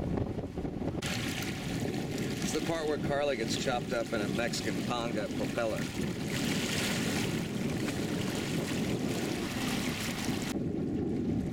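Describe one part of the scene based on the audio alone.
Water splashes against the side of a boat.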